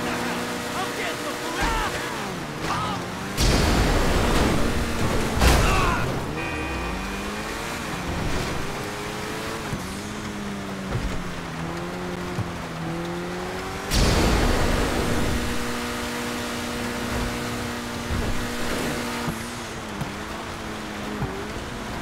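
A car engine revs and hums steadily as it drives.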